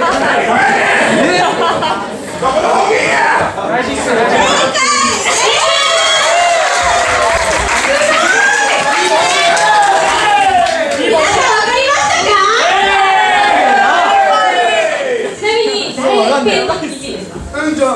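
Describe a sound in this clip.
Young women talk excitedly into microphones, heard over loudspeakers.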